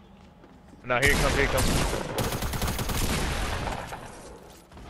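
Rapid gunshots blast close by.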